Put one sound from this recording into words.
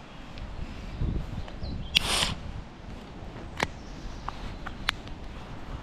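Fabric rustles and brushes close against the microphone.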